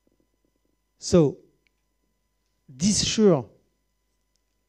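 A man speaks into a microphone, in short phrases with long pauses.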